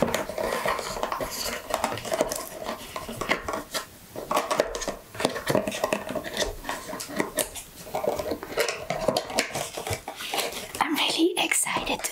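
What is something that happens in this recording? Fingernails tap and scratch on a cardboard box close up.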